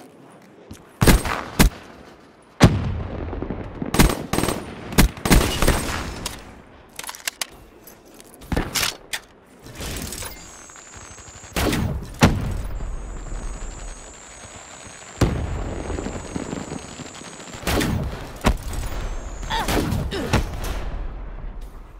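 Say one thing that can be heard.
Gunshots fire in sharp bursts and echo.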